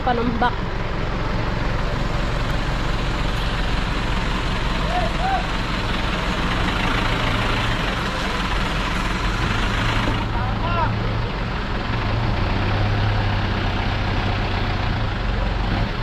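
A truck engine idles nearby with a low, steady rumble.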